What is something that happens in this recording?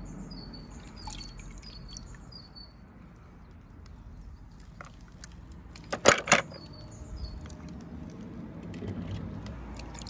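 A small toy car splashes into water.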